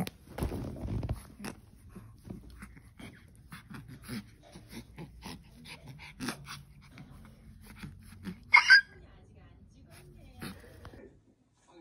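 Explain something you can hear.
A small dog gnaws and chews on a toy.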